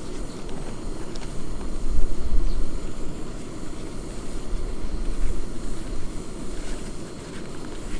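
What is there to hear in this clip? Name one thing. Small objects clink and rattle as they are handled.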